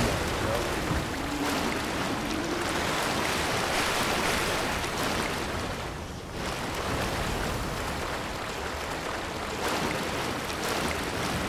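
Water splashes as a person wades through it.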